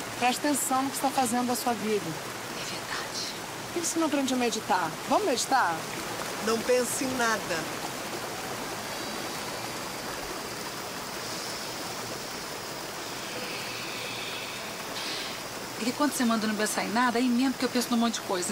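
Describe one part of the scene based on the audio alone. Water rushes steadily over a small waterfall.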